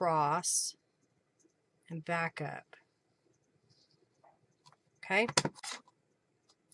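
Paper rustles softly as it is handled.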